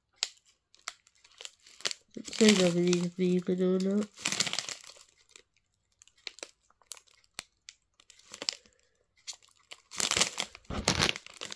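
A plastic snack bag crinkles and rustles in a hand.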